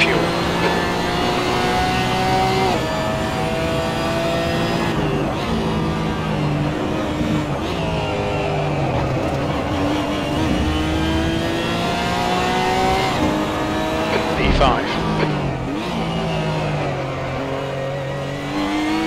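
A racing car engine roars loudly, climbing in pitch and dropping sharply at each gear change.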